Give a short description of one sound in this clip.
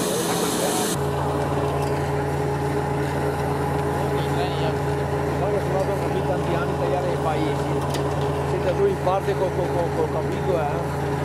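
A threshing machine rumbles and rattles steadily.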